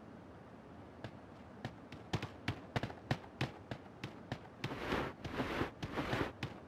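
Quick footsteps thud on the ground.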